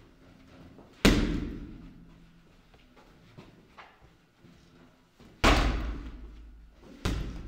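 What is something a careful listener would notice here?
A punching bag is struck with heavy, booming thuds.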